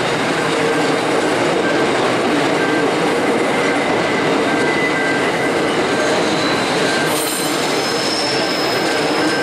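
Train wheels squeal on a curve.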